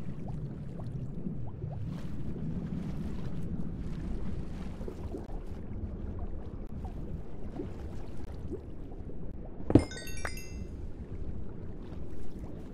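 Water swirls and bubbles in a low, steady underwater rumble.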